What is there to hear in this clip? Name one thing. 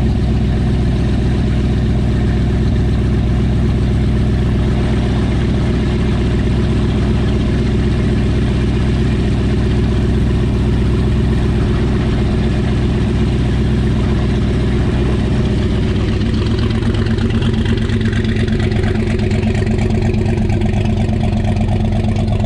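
A big engine idles loudly with a deep, lumpy rumble close by.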